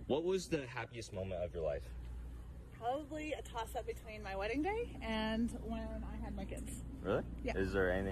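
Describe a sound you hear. A woman answers and laughs.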